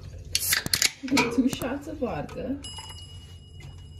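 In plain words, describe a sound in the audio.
A drink pours and fizzes into a glass.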